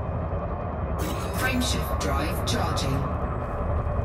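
A harsh electronic crackle bursts out and breaks off.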